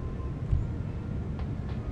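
Small footsteps patter quickly on wood.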